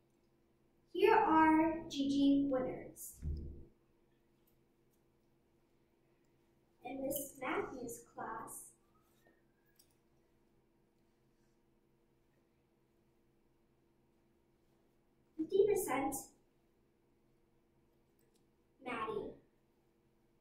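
Young children speak in turn through a microphone, in short bursts with silent pauses.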